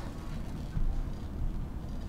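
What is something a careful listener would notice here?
Electric sparks crackle and fizz.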